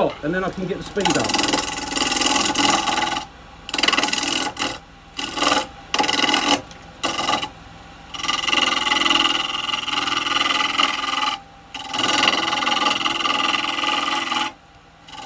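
A gouge scrapes and cuts into spinning wood in bursts.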